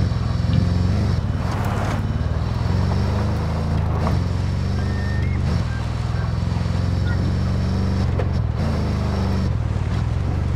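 A heavy vehicle engine rumbles steadily as it drives over rough ground.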